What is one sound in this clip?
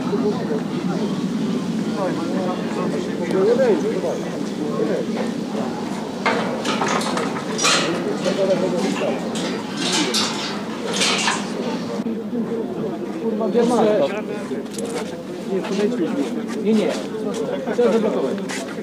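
A crowd of men and women talks and murmurs outdoors.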